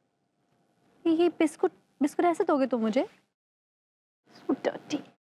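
A woman speaks nearby with animation, in short bursts.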